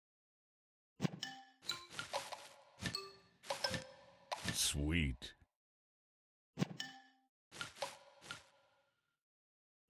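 Bright chimes and pops ring out in bursts as game pieces match and burst.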